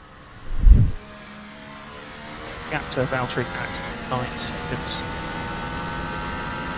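A racing car engine whines at high revs.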